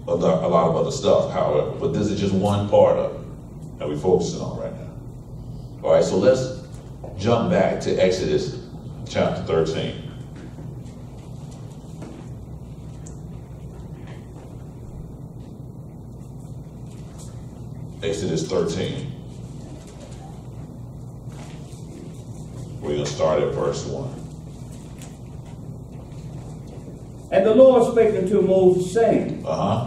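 A man speaks calmly into a microphone, with long pauses, in an echoing room.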